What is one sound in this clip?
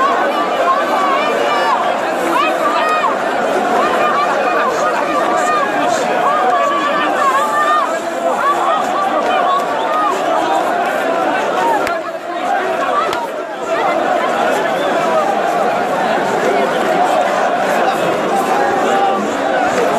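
A large crowd chants loudly outdoors.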